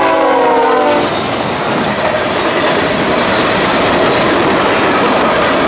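Freight cars rattle and clatter past on the rails.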